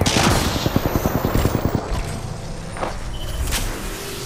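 A shield battery charges with an electric crackle.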